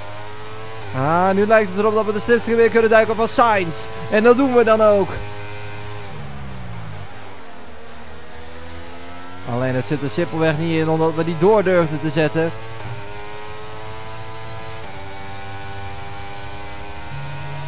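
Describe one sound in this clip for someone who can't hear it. A racing car engine whines at high revs, rising and dropping in pitch with gear changes.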